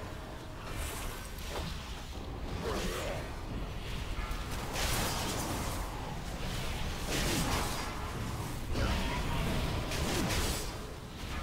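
Magical spell blasts whoosh and crackle in rapid bursts.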